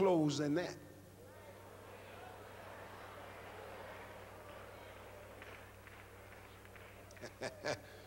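An audience laughs and murmurs softly.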